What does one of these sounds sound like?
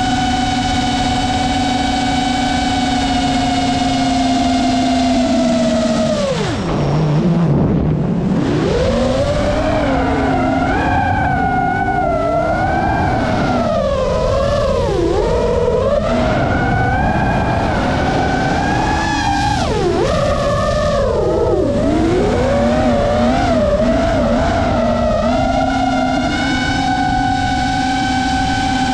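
The electric motors of a small quadcopter drone whine close by, their pitch swooping down and up with the throttle.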